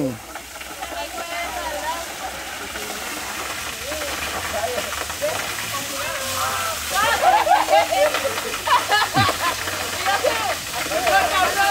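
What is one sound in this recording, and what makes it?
Young women laugh and shout excitedly close by.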